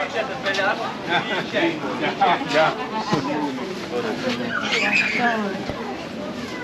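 People chatter in a crowd outdoors.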